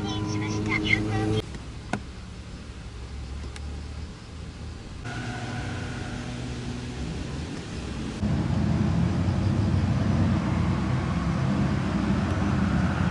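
Car tyres roll over asphalt.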